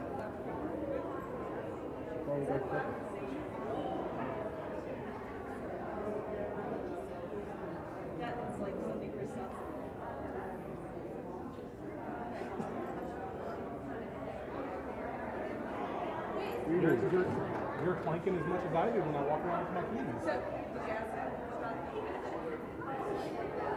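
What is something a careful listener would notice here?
A crowd of men and women chat and murmur all at once in a large echoing hall.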